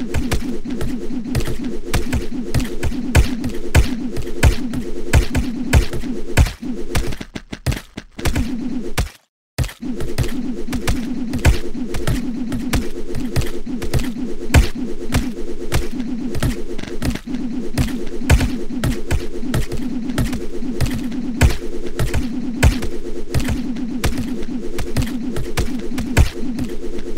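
Sword swings whoosh and strike again and again in quick succession.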